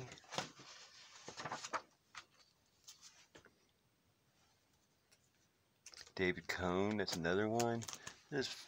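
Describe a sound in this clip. A plastic binder page rustles as a hand turns it.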